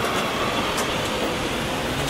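A heavy truck drives past close by.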